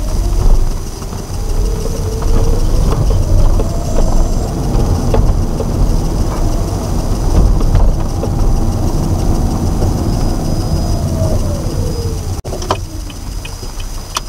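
Tyres rumble over the road surface.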